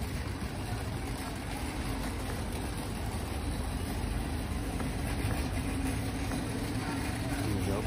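A cart's wheels roll faintly over a paved street.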